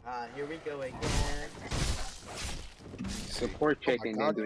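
Blades slash and clang in quick sharp strikes.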